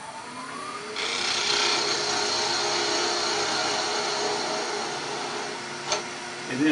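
A chisel scrapes against spinning wood with a rushing hiss.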